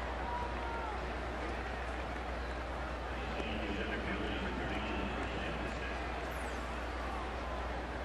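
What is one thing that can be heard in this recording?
A large stadium crowd murmurs and chatters steadily in the open air.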